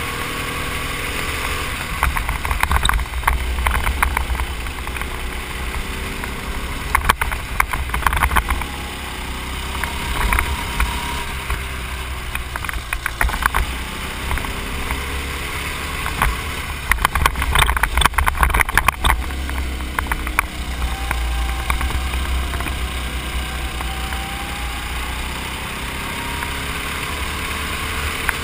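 A small kart engine buzzes loudly and rises and falls in pitch as the kart speeds up and slows down.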